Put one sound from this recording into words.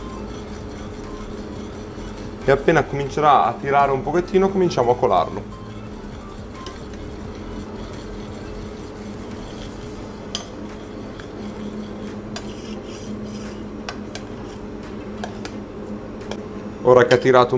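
A metal spoon stirs and clinks in a pot.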